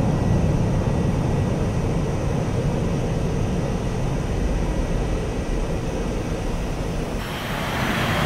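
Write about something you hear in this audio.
A jet engine rumbles low and muffled.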